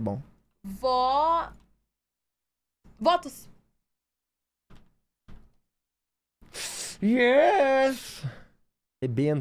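A young woman talks and exclaims through a microphone.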